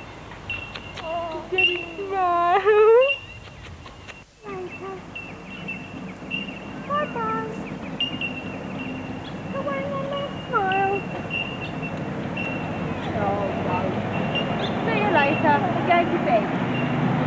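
A young woman talks softly and playfully to a baby close by.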